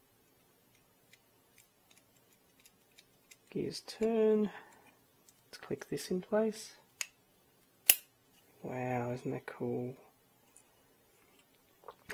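Small plastic parts click as hands fit them together.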